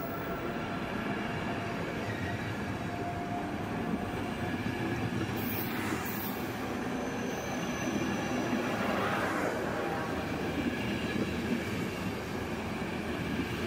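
A passenger train rolls steadily past, its wheels rumbling and clattering on the rails.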